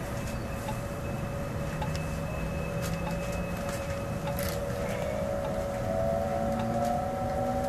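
Train wheels squeal and click on the rails.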